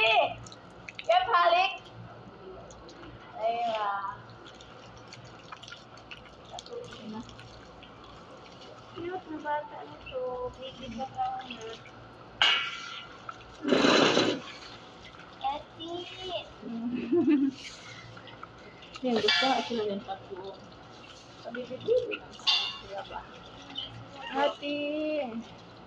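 Women talk nearby with animation.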